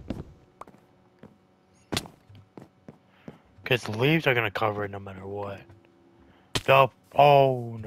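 An axe chops at wood with dull knocks.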